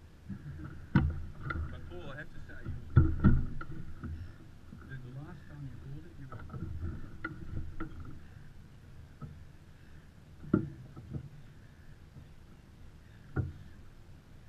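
Rigging and fittings knock against the boat now and then.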